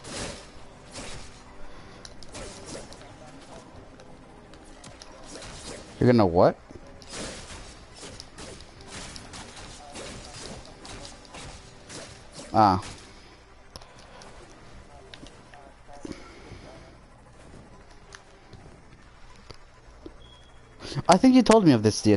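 Swords slash and energy blasts crackle in a fast fight.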